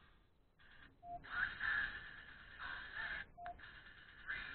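A watch gives short beeps.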